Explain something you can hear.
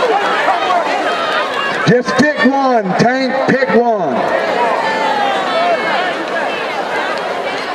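A large outdoor crowd chatters and cheers in the stands.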